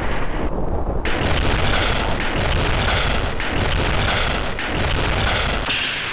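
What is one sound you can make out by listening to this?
A rocket engine roars loudly and steadily.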